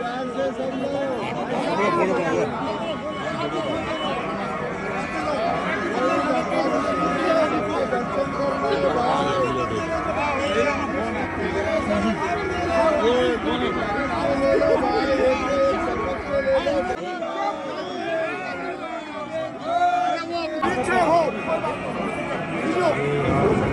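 A dense crowd of men and women chatters and calls out close by, outdoors.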